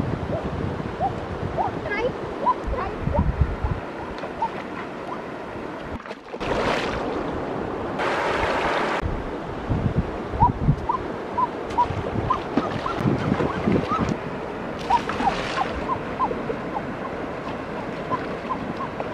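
A shallow river flows and burbles over stones.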